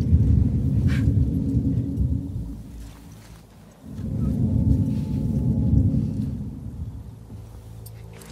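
Ferns and leaves rustle as someone creeps through undergrowth.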